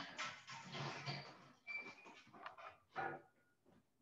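A folding chair rattles as it is carried.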